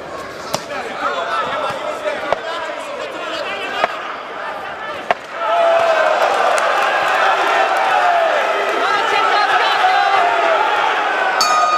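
Boxing gloves thud against bodies in sharp blows.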